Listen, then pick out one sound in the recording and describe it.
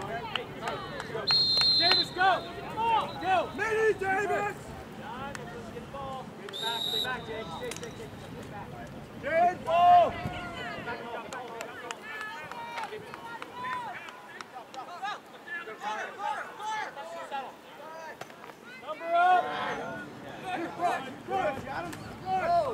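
Young players and spectators shout and call out across an open field.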